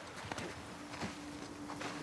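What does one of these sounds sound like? Footsteps run over sand.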